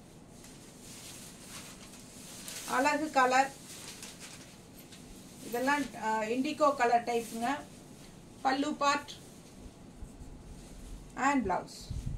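Cloth rustles as a woman unfolds fabric.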